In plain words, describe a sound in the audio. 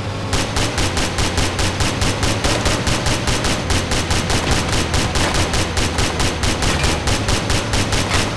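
Tank tracks clank and rattle in a fast, even rhythm.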